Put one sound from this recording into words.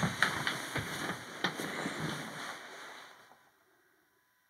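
Bedding rustles as it is pulled and hugged.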